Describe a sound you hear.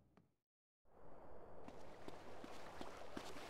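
Footsteps run quickly over dirt outdoors.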